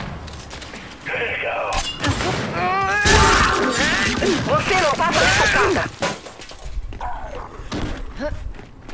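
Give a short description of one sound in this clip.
Heavy gunfire rattles in bursts.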